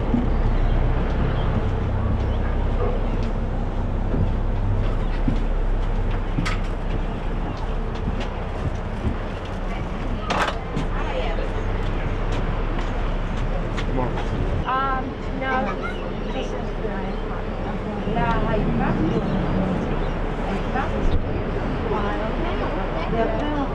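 A ferry engine rumbles low and steady.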